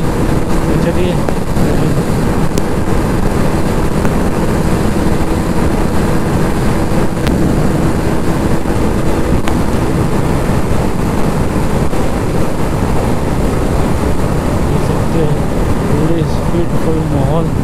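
Wind buffets loudly against the moving rider.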